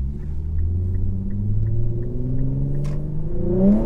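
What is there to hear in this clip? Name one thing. A car's turn signal ticks steadily.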